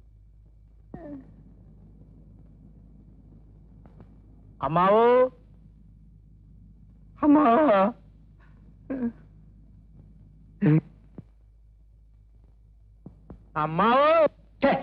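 A man cries out in grief in short, wailing bursts.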